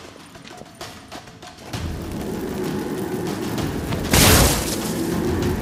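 Footsteps crunch on stone in a cave.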